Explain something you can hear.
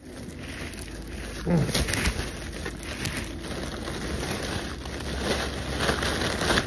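Foil balloons crinkle and rustle.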